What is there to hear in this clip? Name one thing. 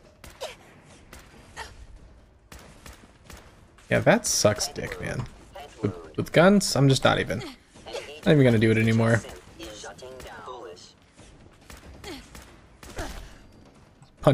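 Laser guns fire in rapid zapping shots.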